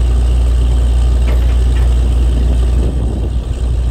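Metal tools clank against a drill pipe.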